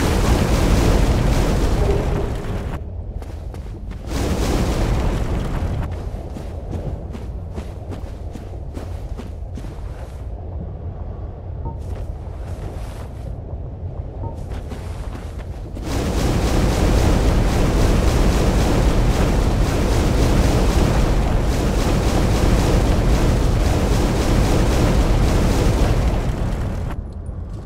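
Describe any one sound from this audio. Molten lava rumbles and roars with a deep, loud drone.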